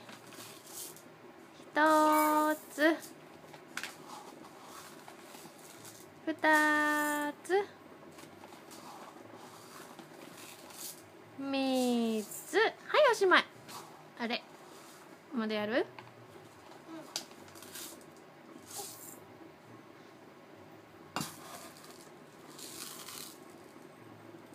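Dry rice pours and rattles into a bowl.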